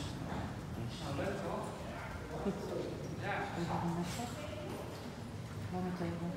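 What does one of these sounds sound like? A woman talks calmly nearby in a large echoing hall.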